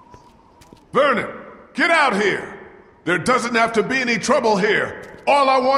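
A man shouts loudly, as if calling into an echoing hall.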